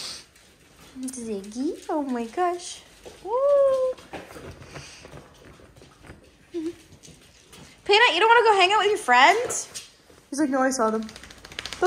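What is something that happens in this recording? Puppies whine, yelp and howl close by.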